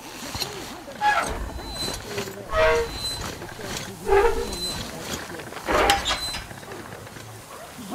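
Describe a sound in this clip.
A rusty metal wheel creaks and squeals as it turns.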